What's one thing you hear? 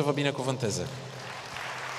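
A middle-aged man speaks calmly into a microphone in a large echoing hall.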